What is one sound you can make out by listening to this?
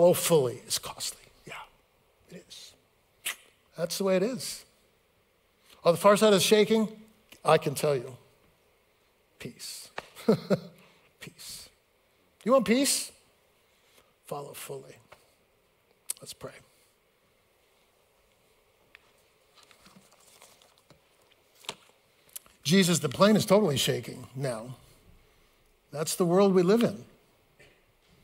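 A middle-aged man speaks through a microphone, with pauses.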